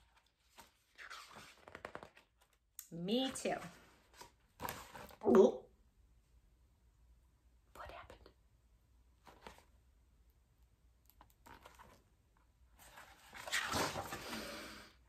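A woman reads aloud with animation, close by.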